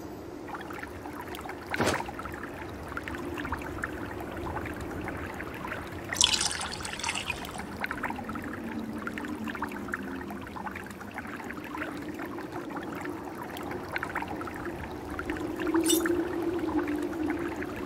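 Water splashes steadily from a fountain spout into a basin.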